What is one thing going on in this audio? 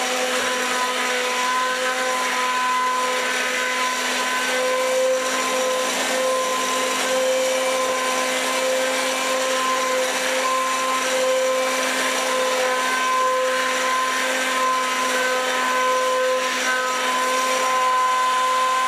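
An electric hand blender whirs steadily in a pot of soup.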